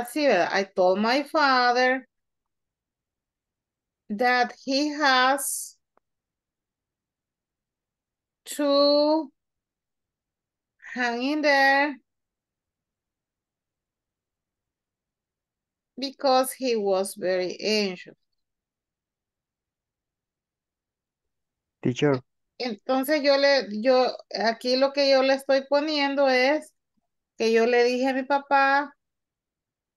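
A woman speaks calmly in short phrases over an online call, with long pauses.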